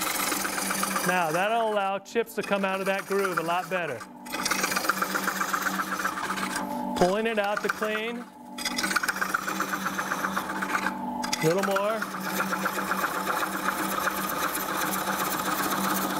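A chisel scrapes and chatters against spinning wood.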